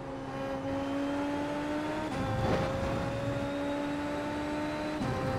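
A racing car engine whines at high revs, dropping briefly at each gear change.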